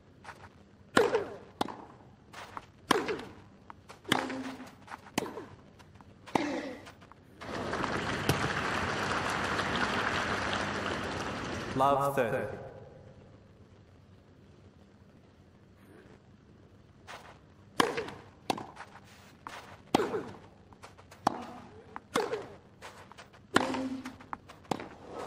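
Tennis balls are struck back and forth with sharp pops.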